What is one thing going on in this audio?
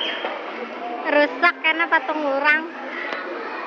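A baby girl squeals and babbles.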